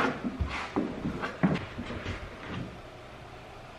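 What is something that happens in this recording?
A trowel scrapes and spreads glue on a floor.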